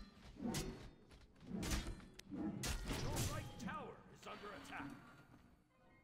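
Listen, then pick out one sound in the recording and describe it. Weapons clash and magic blasts crackle in a fight.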